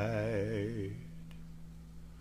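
A guitar chord rings and fades.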